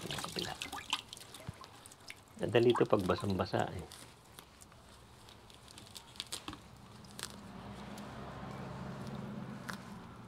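Soil crumbles and roots rustle as hands work them loose.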